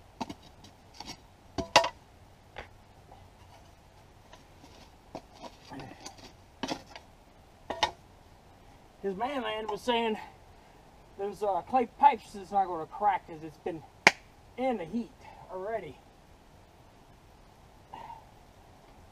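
A man knocks and clinks metal pieces on bricks.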